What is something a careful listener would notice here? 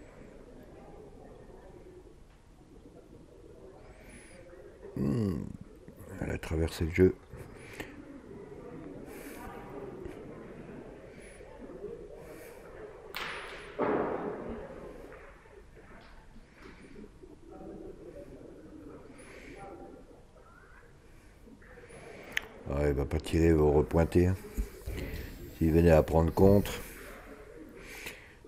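Spectators murmur softly in a large echoing hall.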